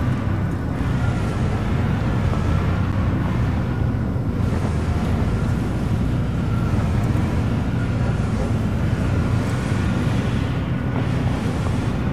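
A thin engine whine hums steadily above the rumble.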